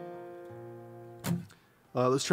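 A guitar chord rings out and fades.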